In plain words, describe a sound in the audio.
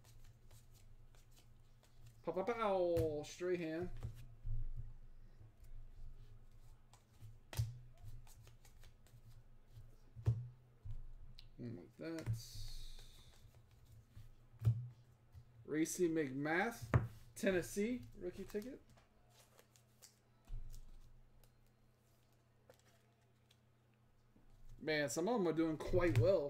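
Trading cards rustle and slide against each other in hands.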